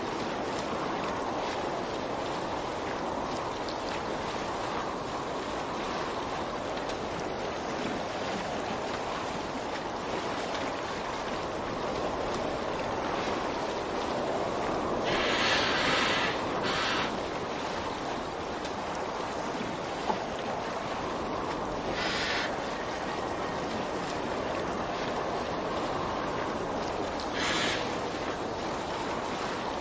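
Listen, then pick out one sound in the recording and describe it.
Oars dip and pull through the water.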